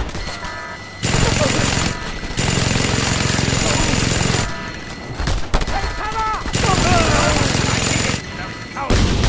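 A heavy machine gun fires in long, rapid bursts.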